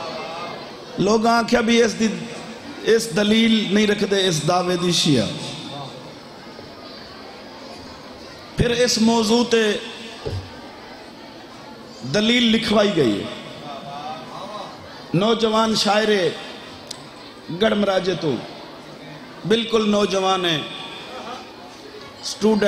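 A man speaks forcefully into a microphone over a loudspeaker, in bursts with pauses, in an echoing space.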